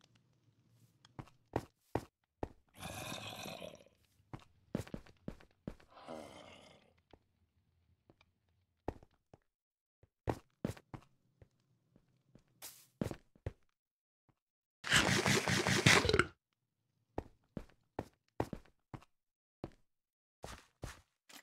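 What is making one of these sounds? Footsteps tap quickly on hard stone.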